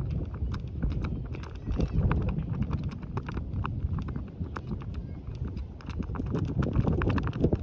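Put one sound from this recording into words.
Wind blows outdoors and rumbles against the microphone.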